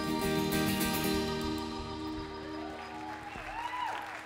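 A band plays a final chord that rings out and fades.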